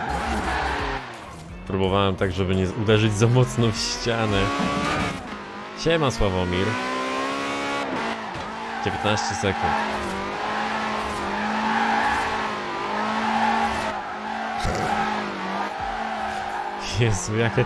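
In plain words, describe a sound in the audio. A car engine roars and revs through gear changes.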